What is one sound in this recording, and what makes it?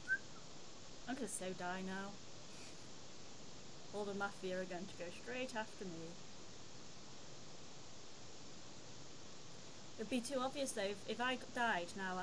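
A young woman speaks casually into a close microphone.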